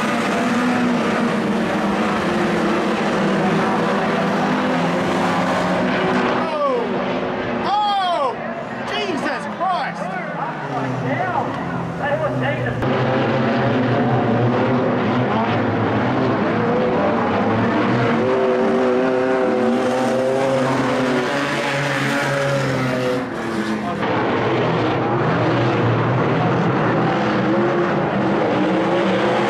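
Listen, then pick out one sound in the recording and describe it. Racing car engines roar loudly as the cars speed past outdoors.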